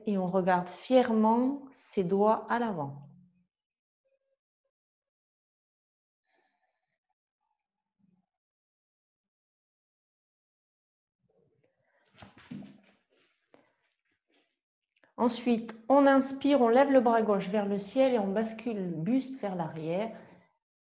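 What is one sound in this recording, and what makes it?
A woman speaks calmly and clearly into a close microphone, with long pauses.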